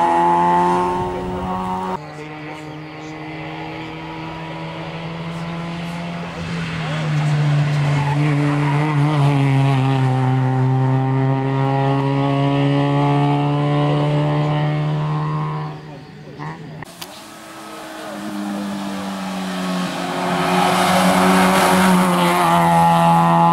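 A rally car engine revs hard and roars past, its pitch rising and falling through gear changes.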